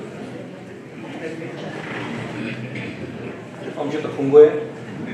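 A man speaks into a microphone, heard over loudspeakers in a hall.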